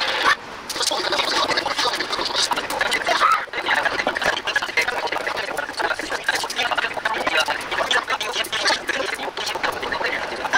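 Fingers peel papery garlic skins.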